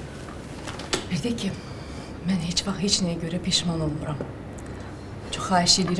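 A young woman speaks.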